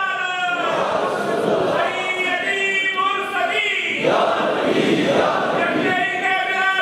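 A man chants in a long, melodic voice through a loudspeaker in a large echoing hall.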